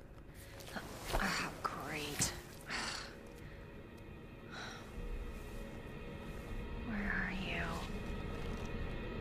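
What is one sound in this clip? A young woman speaks softly to herself.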